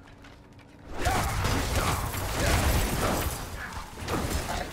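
Weapons clash and thud in a fight.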